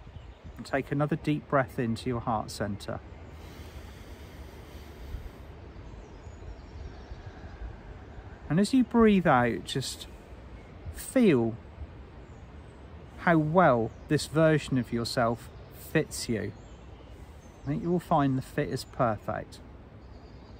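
A middle-aged man speaks calmly and slowly, close to the microphone, outdoors.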